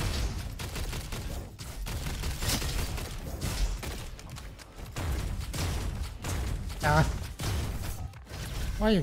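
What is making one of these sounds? Guns fire in rapid bursts with sharp bangs.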